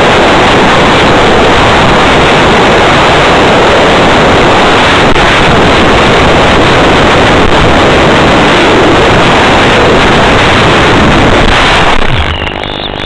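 Wind roars loudly past a fast-flying model aircraft.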